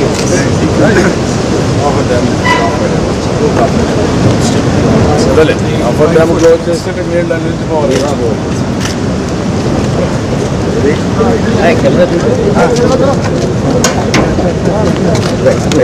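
Several men talk at once nearby, outdoors.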